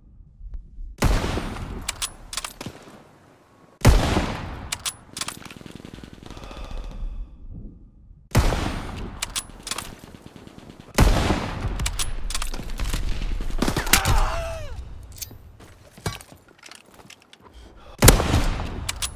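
Rifle shots ring out loudly and echo.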